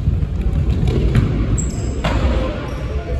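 A ball is kicked with sharp thumps that echo around a large hall.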